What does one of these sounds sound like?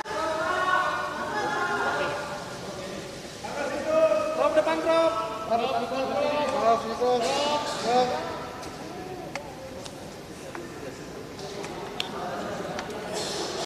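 Several men talk loudly over one another in a bustling crowd.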